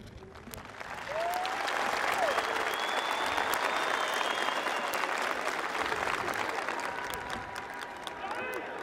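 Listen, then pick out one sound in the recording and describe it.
A crowd applauds and cheers loudly outdoors.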